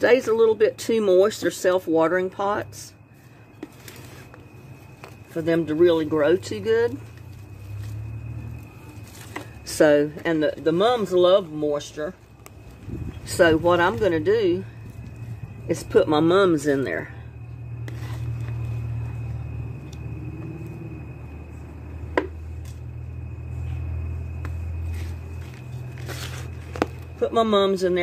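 A trowel scrapes and scoops soil in a plastic pot.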